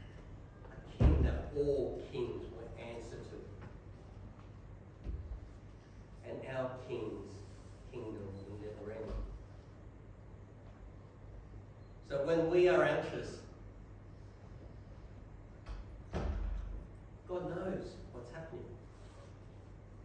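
A man speaks calmly through a loudspeaker in a large echoing hall, with pauses.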